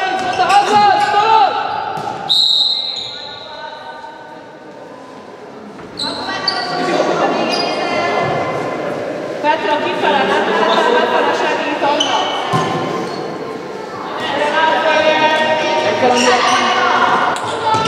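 Young girls shout and call out to each other in an echoing sports hall.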